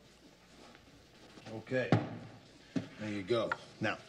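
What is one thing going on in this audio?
A paper cup is set down on a table with a soft knock.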